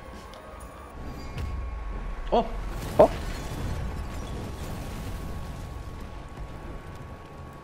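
Loud explosions boom and rumble one after another.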